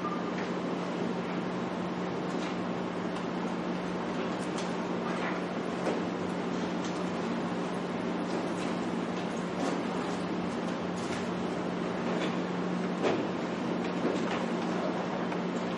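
An air conditioner hums steadily.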